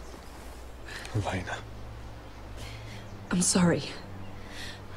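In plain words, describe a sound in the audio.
A woman speaks softly and sadly.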